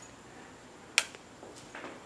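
A button clicks sharply.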